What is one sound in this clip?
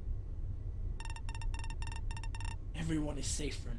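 Rapid electronic blips tick in a quick run.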